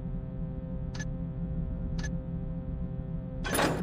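Short interface clicks sound a few times.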